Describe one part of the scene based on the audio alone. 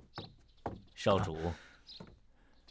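A middle-aged man speaks a short greeting.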